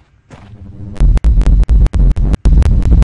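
A heavy gun fires in loud, rapid bursts.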